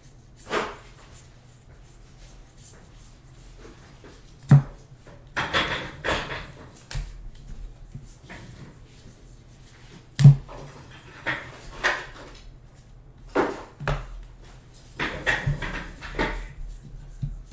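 Trading cards rustle and slide as they are flipped through by hand.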